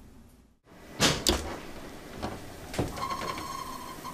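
An oven door clunks open.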